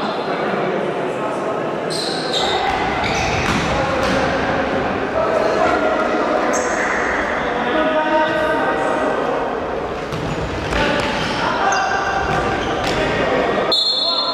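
A ball is kicked sharply on an indoor court, thudding in a large echoing hall.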